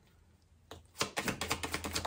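Cards riffle and shuffle quickly.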